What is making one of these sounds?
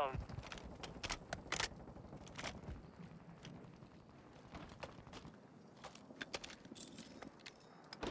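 Footsteps crunch quickly on dry ground.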